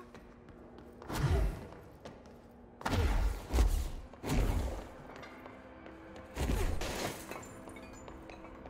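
A deep roaring whoosh surges in loud bursts.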